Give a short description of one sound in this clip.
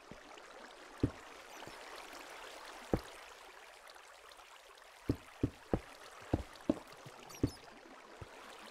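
Blocks thud as they are placed one after another.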